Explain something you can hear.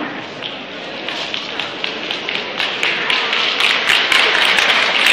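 People clap their hands, the applause growing louder.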